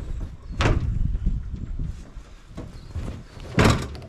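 A light hull thuds softly onto grass.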